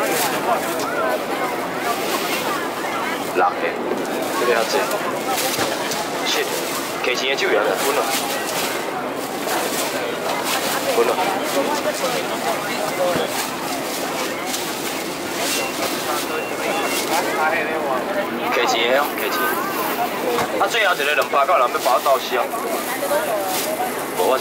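Men call out loudly close by.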